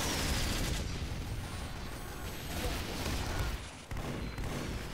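Flames roar and crackle nearby.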